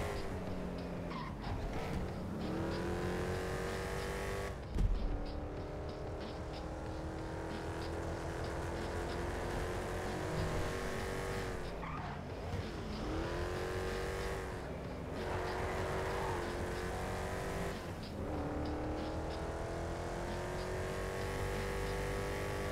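A hot rod engine accelerates hard through the gears, its pitch climbing and dropping at each shift.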